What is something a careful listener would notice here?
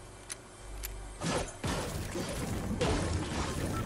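A pickaxe strikes metal with sharp clangs.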